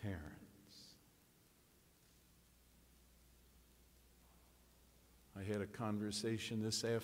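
An elderly man speaks calmly through a microphone in an echoing hall.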